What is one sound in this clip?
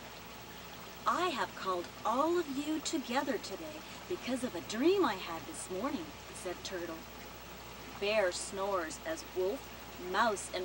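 A woman reads aloud with animation, close by.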